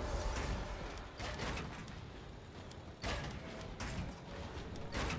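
Short sharp game sounds of building and shooting burst out now and then.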